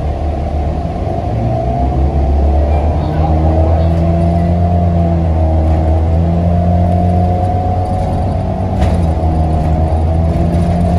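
A bus engine revs and whines, rising and falling in pitch as the bus pulls away.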